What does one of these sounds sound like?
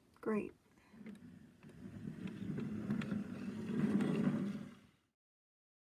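A plastic toy car rolls across a table with a low rumble.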